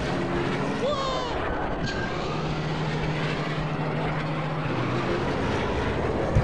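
Racing pod engines roar and whine steadily at high speed.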